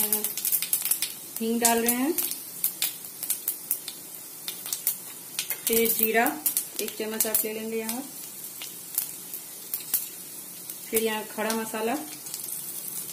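Seeds sizzle and crackle in hot oil.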